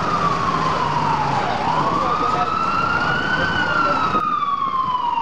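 A truck drives past close by.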